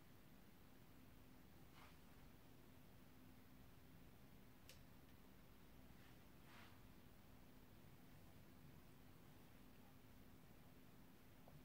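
A makeup brush sweeps softly over skin.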